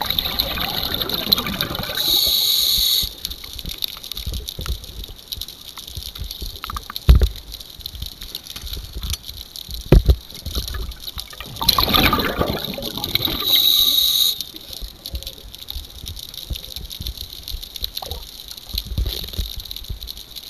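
Muffled water sloshes and gurgles, heard from underwater.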